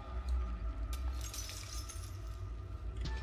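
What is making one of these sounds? Electric sparks crackle and fizz nearby.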